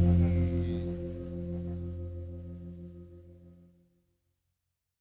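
An electric guitar's last chord rings out and slowly fades away.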